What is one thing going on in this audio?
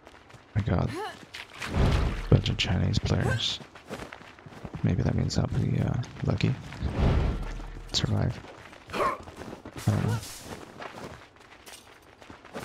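Footsteps run over ground and up metal stairs.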